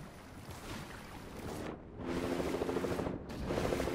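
Water splashes as someone wades and dives in.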